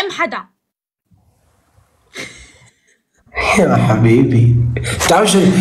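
A young man talks with animation over an online call.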